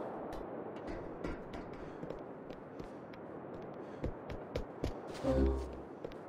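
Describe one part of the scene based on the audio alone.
Footsteps tap on a hard rooftop.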